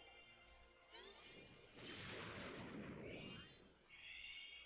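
A fiery explosion bursts.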